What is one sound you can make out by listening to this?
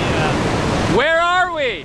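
A young man calls out nearby in a drawn-out, rising and falling voice.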